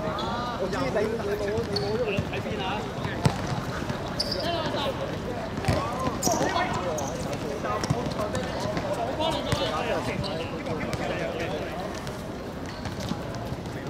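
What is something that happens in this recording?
Young men shout to each other during a football match outdoors.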